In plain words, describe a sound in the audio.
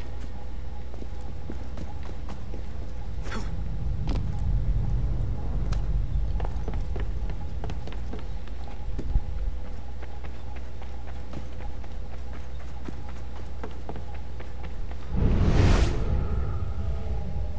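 A figure in a video game climbs and steps on stone, with soft scuffs and taps.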